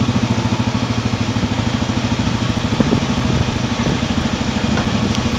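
A motorcycle engine thrums at low speed.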